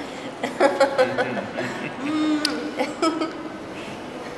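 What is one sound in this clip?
A woman laughs joyfully close by.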